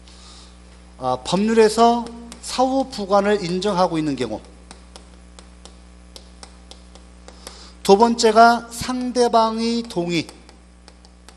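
A man lectures with animation through a microphone.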